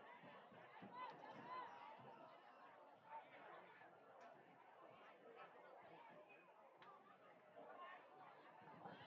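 A large crowd of men and women chatters and calls out in an open stadium.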